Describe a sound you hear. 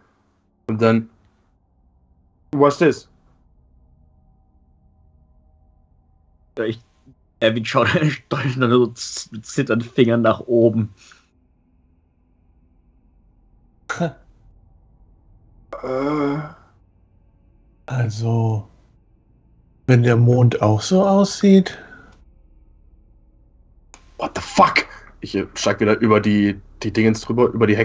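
Several men talk by turns over an online call, with animation.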